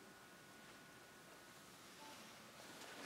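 A string quartet plays a soft, held note.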